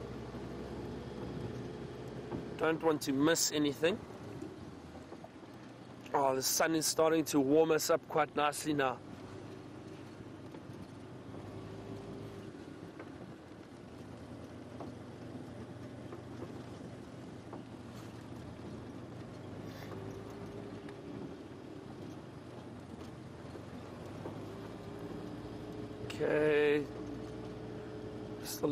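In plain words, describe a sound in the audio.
A vehicle engine rumbles steadily as it drives over a rough dirt track.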